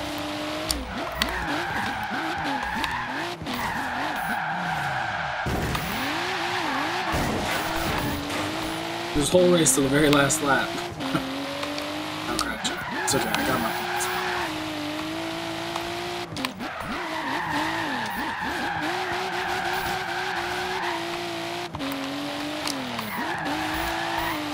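Tyres screech as a car slides through bends.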